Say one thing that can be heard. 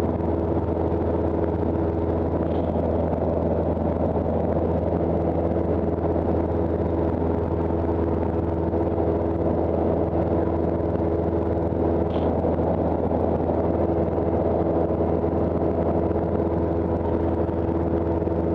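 A small plane's propeller engine drones loudly and steadily close by.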